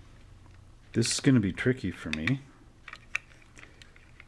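Small plastic parts click and tap softly as they are handled.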